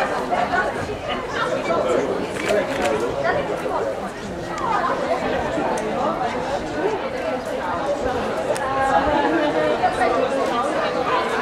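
A crowd of men and women chatters outdoors all around.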